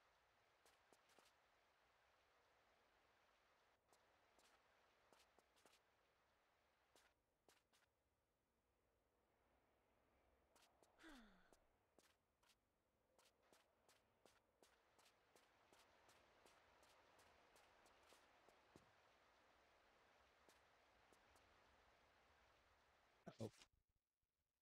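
Footsteps crunch quickly on snow.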